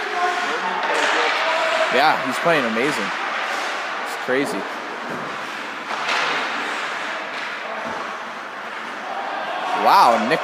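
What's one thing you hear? Ice skates scrape and hiss across the ice in a large echoing rink.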